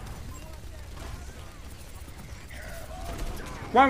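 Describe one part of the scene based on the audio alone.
A gun fires rapidly in a game.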